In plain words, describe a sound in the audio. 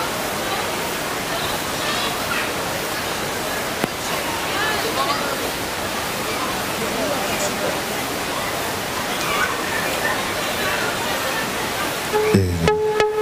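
A crowd of men and women chatters loudly in a large echoing hall.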